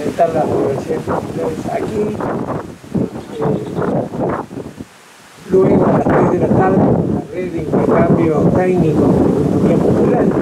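An elderly man speaks calmly into a microphone, heard through a loudspeaker outdoors.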